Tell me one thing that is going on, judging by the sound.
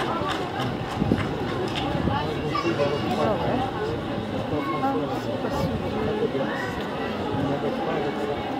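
A brass band plays a lively tune outdoors.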